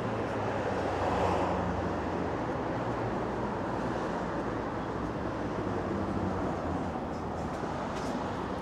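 Street traffic rumbles steadily in the distance.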